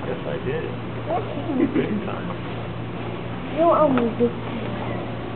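Young people talk in short bursts nearby.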